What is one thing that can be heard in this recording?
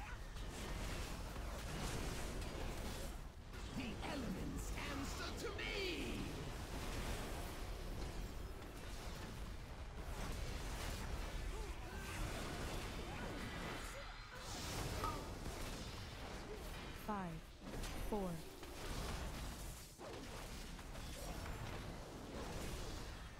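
Weapon hits thud and clang again and again.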